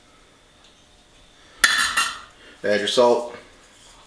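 Tongs clink against a metal pan.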